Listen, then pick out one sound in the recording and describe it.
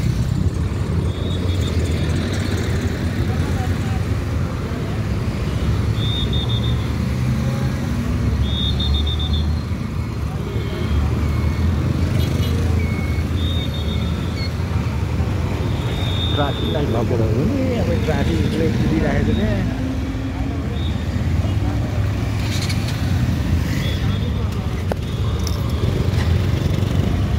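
Horns beep repeatedly from passing vehicles.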